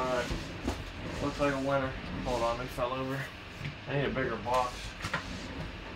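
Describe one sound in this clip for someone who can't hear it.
A cardboard box is set down on a hard surface.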